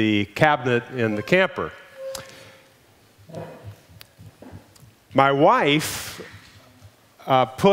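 An elderly man speaks with animation over a microphone in a large room.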